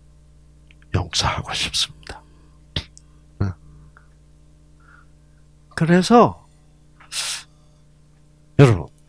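An elderly man speaks with animation into a microphone, in short bursts.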